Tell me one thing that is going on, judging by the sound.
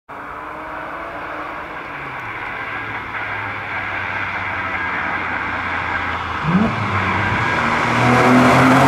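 A car engine approaches along the road, growing louder.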